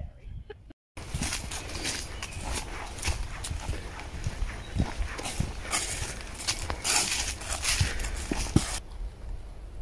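Footsteps crunch on dry fallen leaves.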